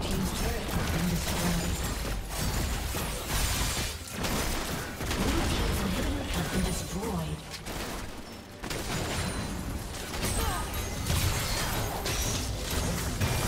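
Magic blasts, hits and clashes of a fight crackle in quick succession.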